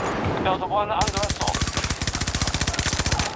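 A rifle fires in a rapid, steady burst close by.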